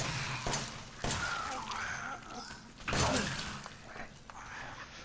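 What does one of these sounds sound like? A young man speaks into a close microphone, reacting with animation.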